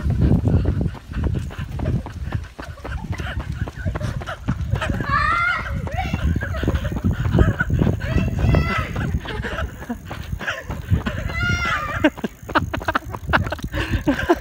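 Bicycle tyres roll over tarmac.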